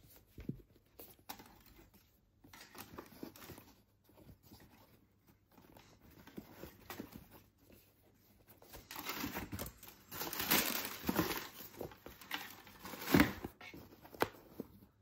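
Hands handle a shoe, its material rustling and creaking.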